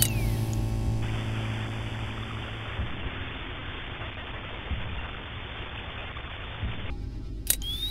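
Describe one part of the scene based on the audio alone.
Electronic static hisses steadily.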